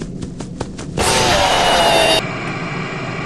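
A robotic creature lets out a loud, harsh screech close up.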